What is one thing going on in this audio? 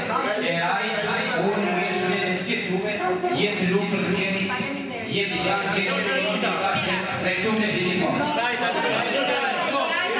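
A middle-aged man speaks into a microphone through a loudspeaker to a room.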